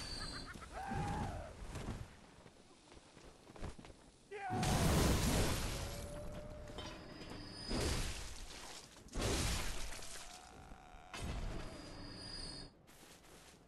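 Heavy blows and whooshing strikes sound from a game fight.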